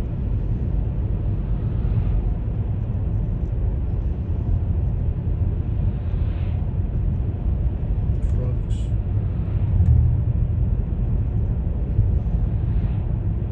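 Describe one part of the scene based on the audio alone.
Oncoming cars swish past.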